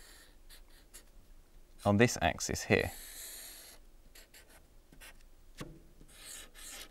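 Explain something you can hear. A felt-tip marker squeaks and scratches across a whiteboard.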